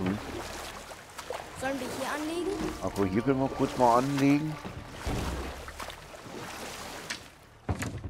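Oars splash and paddle through water.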